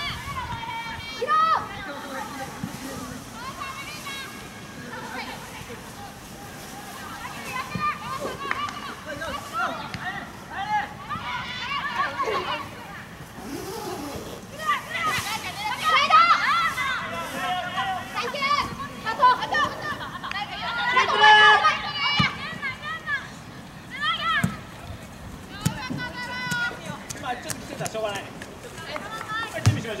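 Young women shout across an open field.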